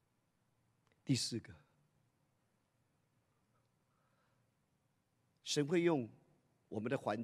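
A man speaks through a microphone in short bursts.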